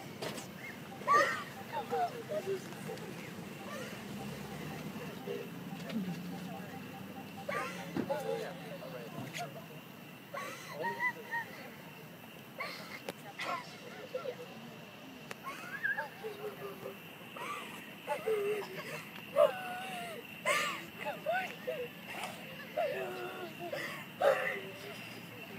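A woman sobs and cries out close by.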